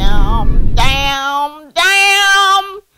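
A woman wails loudly in distress.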